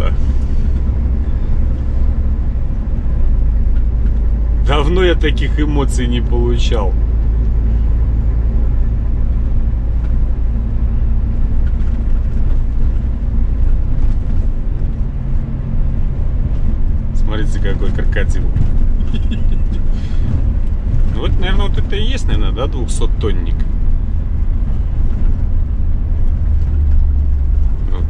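Tyres rumble over a rough dirt road.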